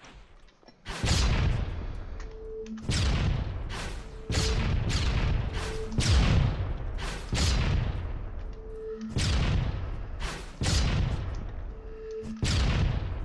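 Loud magic blasts whoosh and boom again and again, each one fading quickly.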